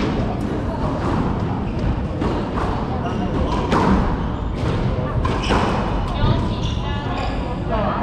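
A squash ball smacks off rackets and walls, echoing in a hard room.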